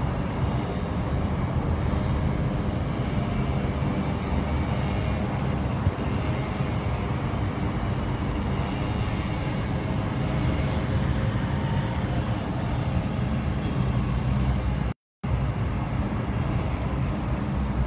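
A car's engine and tyres rumble steadily while driving along a street.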